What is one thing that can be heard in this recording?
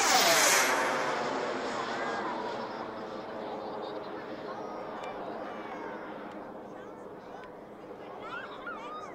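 A propeller plane's engine drones steadily as it climbs away.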